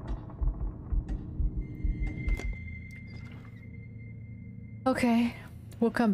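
A wooden panel slides shut with a heavy clunk.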